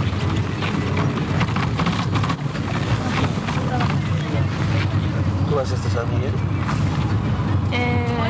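A vehicle engine rumbles steadily.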